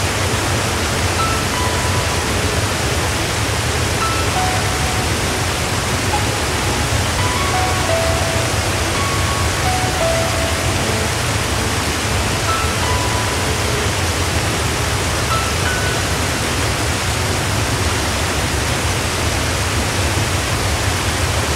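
River water rushes steadily over rocks and rapids.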